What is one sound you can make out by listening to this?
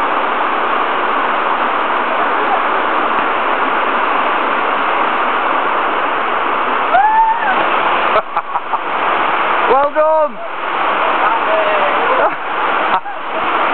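A mountain stream rushes over rocks.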